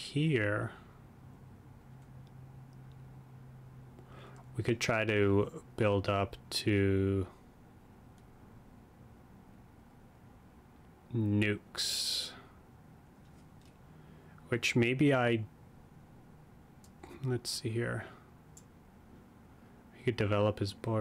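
A young man talks calmly into a close microphone, in short bursts.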